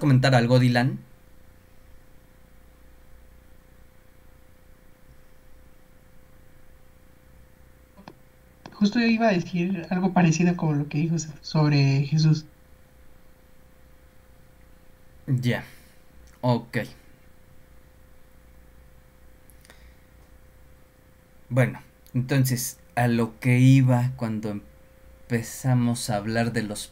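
A man speaks calmly in bursts, heard through an online call.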